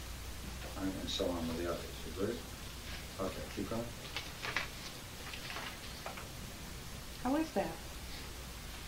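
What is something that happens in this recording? A woman reads aloud calmly, close by.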